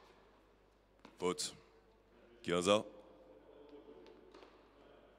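A tennis ball pops off a racket.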